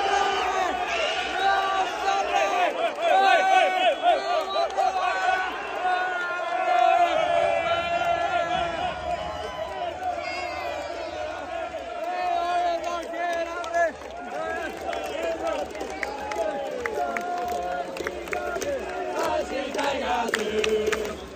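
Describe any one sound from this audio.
A large stadium crowd sings and chants together.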